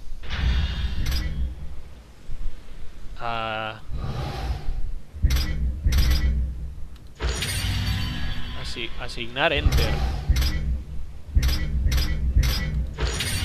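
Short clicks sound as menu items are selected.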